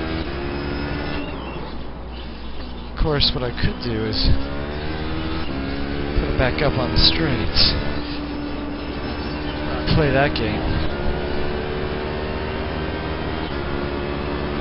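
A racing car engine roars steadily through loudspeakers.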